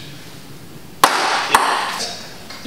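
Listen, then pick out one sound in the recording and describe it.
A ping pong ball clicks on a table.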